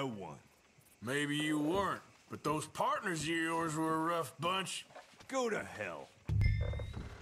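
A second man answers in a calm, gruff voice.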